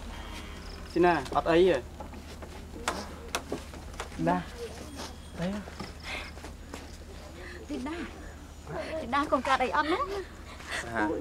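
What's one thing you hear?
A woman calls out anxiously nearby.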